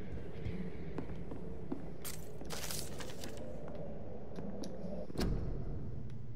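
Footsteps thud on a creaking wooden floor.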